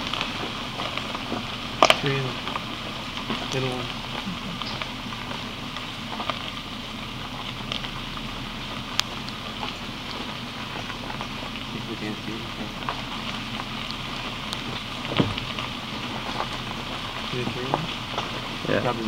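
Small birds peep softly close by.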